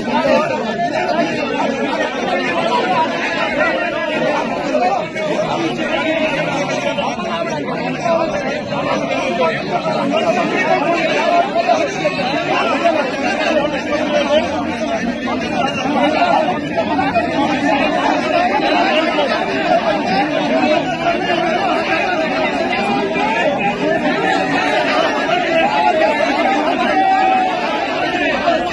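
A crowd of men shout and argue loudly close by.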